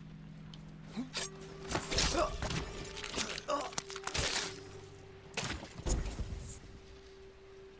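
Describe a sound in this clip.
Heavy objects thud and clatter.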